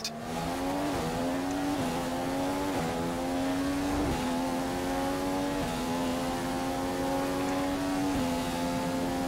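A racing car engine drops in pitch with each gear change.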